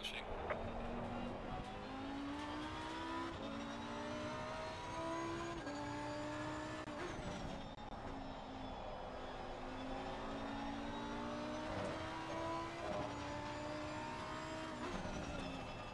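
A racing car engine roars and revs up through the gears.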